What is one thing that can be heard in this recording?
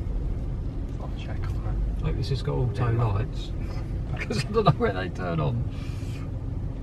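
A man talks calmly nearby inside the car.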